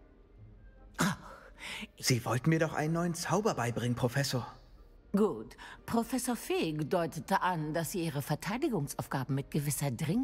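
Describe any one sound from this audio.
An elderly woman speaks warmly and with animation.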